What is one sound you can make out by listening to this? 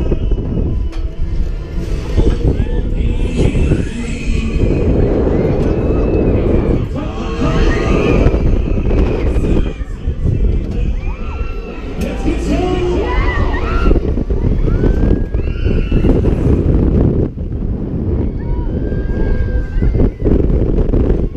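Wind rushes loudly past, gusting and buffeting.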